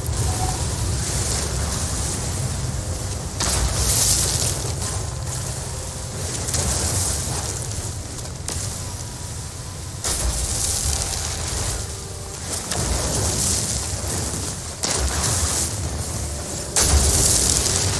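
A mining laser hums and crackles as it cuts into rock.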